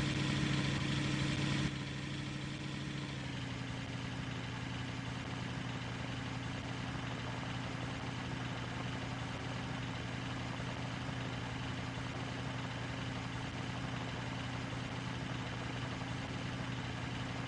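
A truck's diesel engine rumbles steadily, loud at first and then quieter.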